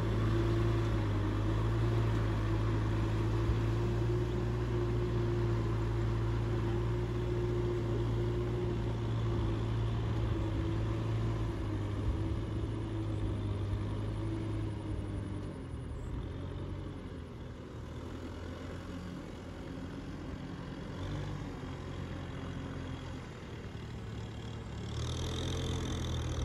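A tractor engine rumbles steadily nearby, growing quieter as it moves away.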